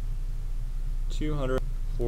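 A felt marker scratches and squeaks across paper.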